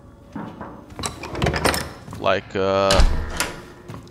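A metal door bolt slides open with a click.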